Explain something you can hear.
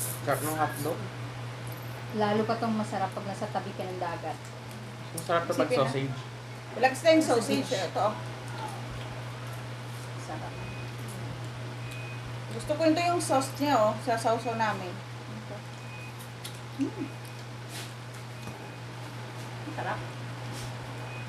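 Food is chewed and shells crack at a table.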